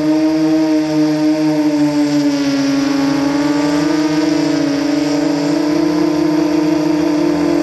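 Drone propellers buzz loudly and steadily, rising and falling slightly in pitch.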